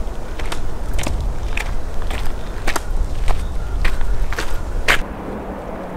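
Trekking poles click on a gravel path.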